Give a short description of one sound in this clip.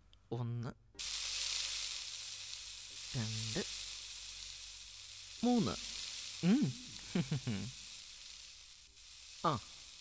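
Hot oil sizzles and bubbles steadily in a pan.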